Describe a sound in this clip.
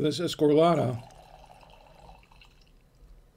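Wine pours into a glass.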